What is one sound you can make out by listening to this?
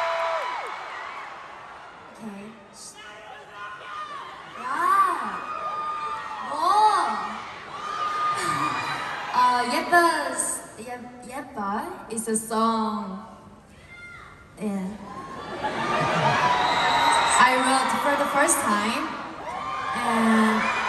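A young woman sings into a microphone through loud speakers in a large echoing arena.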